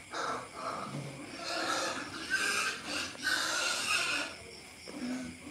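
Pigs grunt and squeal nearby.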